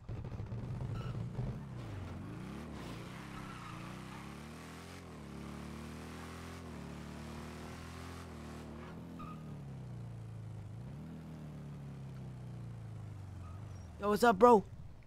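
A motorbike engine hums and revs up and down.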